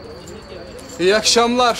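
A young man calls out a loud greeting.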